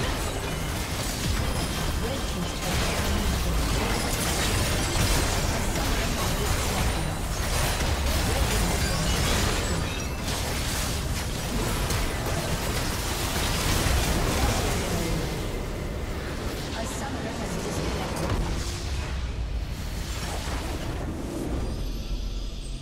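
Game spell effects crackle, clash and explode in a busy battle.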